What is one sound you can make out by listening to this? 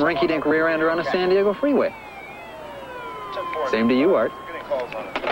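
A man talks animatedly into a phone.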